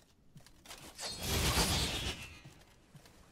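A loud whooshing blast of a video game effect swells and fades.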